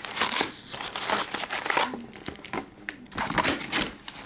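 Cards shuffle and rustle.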